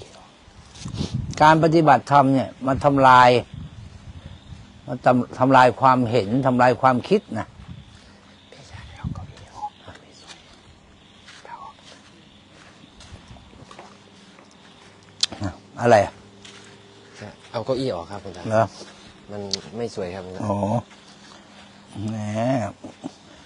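An older man speaks calmly and clearly into a nearby microphone, with pauses.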